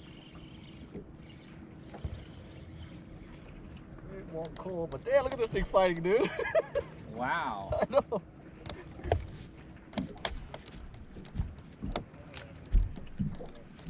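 A fishing reel clicks and whirs as a line is wound in.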